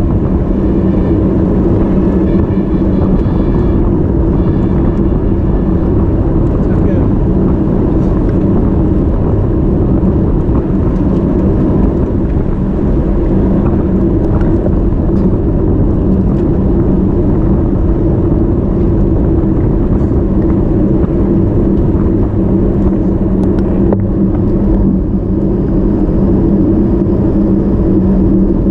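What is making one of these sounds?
Bicycle tyres hum steadily on smooth tarmac.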